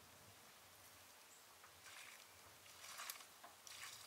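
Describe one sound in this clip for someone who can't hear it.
A metal bucket clanks and rattles.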